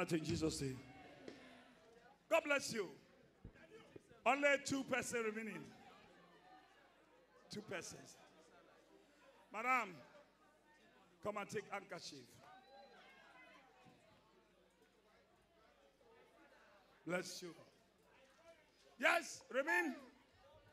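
Adults in a crowd call out loudly in short bursts.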